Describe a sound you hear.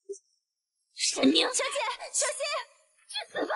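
A young woman cries out in alarm.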